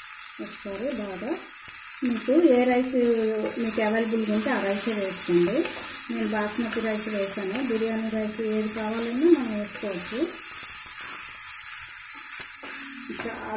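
A spatula scrapes and stirs rice in a metal pot.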